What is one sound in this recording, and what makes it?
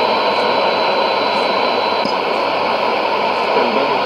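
A radio button clicks once as the tuning changes.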